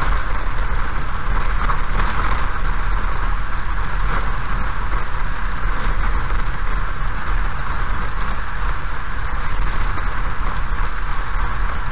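Raindrops patter on a windscreen.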